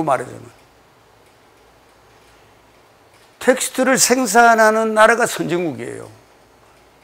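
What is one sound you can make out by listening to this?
An elderly man lectures with animation through a close microphone.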